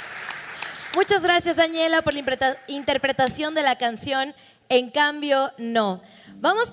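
A young woman speaks clearly into a microphone, reading aloud in a hall.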